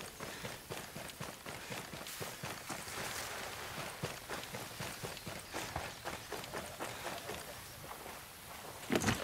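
Footsteps crunch quickly over grass and gravel.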